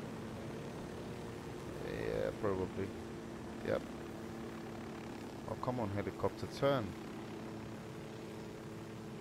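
A helicopter's rotor and engine hum steadily.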